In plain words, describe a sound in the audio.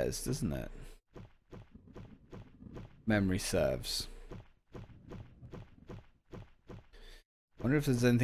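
Footsteps tap steadily on stone stairs.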